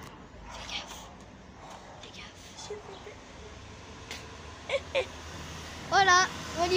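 A boy talks close to the microphone with animation.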